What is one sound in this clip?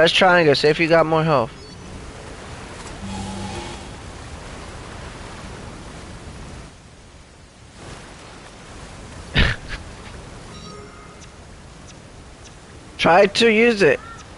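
A waterfall pours down with a steady rush.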